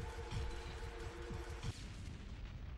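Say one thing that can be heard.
Gunfire blasts in quick bursts.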